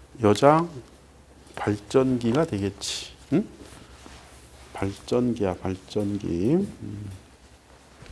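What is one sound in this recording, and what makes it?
A man speaks calmly into a clip-on microphone.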